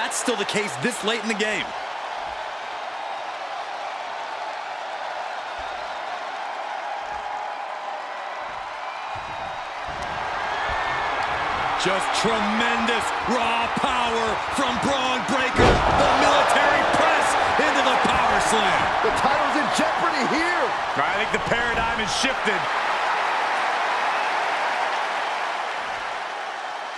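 A large crowd cheers and roars in a big echoing arena, growing louder.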